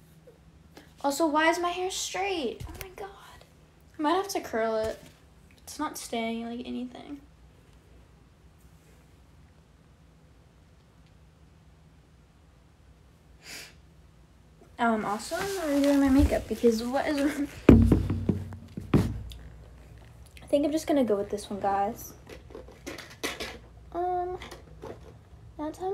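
A young woman speaks close to a microphone, casually and with animation.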